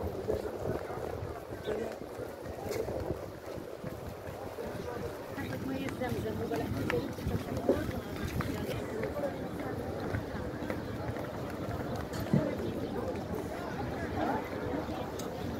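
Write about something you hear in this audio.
A crowd of people murmurs and talks outdoors.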